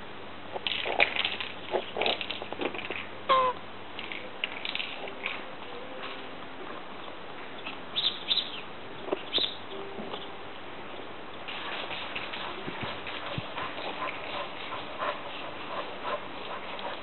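A tortoise gives short, high squeaks again and again.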